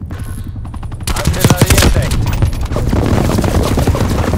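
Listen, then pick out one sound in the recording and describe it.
Rapid rifle gunfire bursts out.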